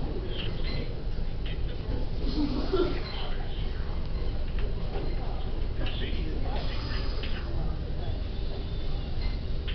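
Fingers handle and rustle a sheet of paper close by.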